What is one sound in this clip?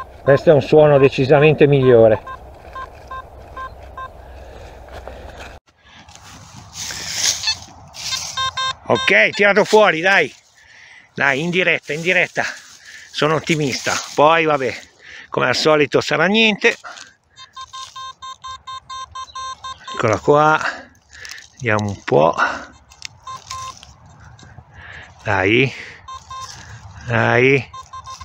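A metal detector beeps with warbling tones, on and off.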